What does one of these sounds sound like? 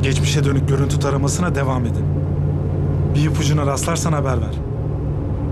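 A young man talks calmly on a phone, close by.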